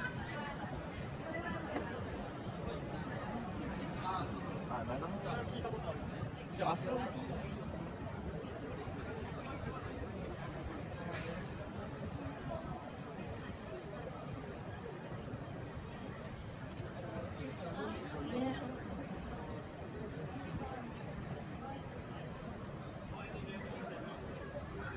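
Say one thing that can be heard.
A crowd of people chatter nearby outdoors.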